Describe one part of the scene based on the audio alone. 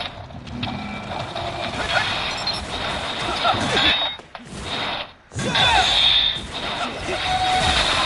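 A sword swishes and clangs in quick slashes.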